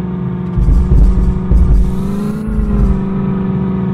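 Car tyres thump over wooden planks.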